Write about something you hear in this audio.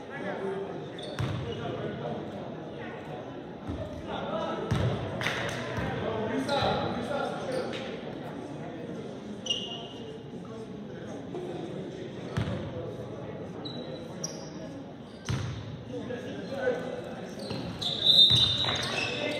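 Young men talk and call out across an echoing gym.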